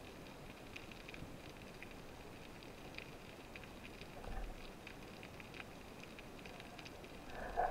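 Water rushes in a low, muffled underwater hush.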